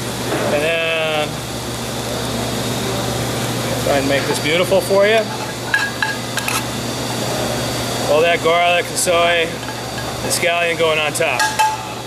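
Metal tongs scrape and clink against a pan.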